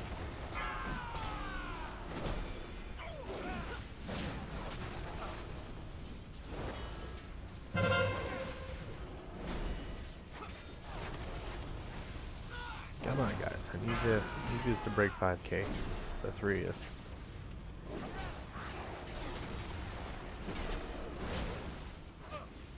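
Swords clash and magic spells whoosh and crackle in a fast game battle.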